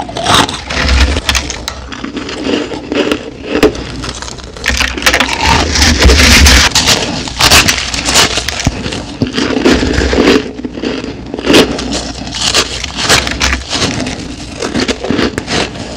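Teeth crunch loudly through shaved ice close to a microphone.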